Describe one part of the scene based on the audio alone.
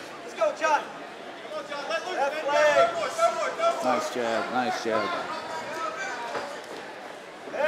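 A crowd of men and women shouts and cheers loudly nearby.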